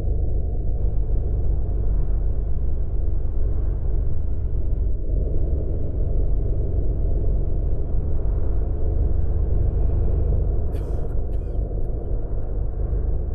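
A bus engine drones steadily as the bus cruises along a highway.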